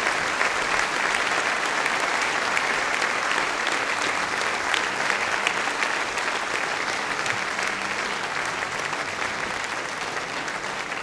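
A large crowd cheers and claps loudly in a big echoing hall.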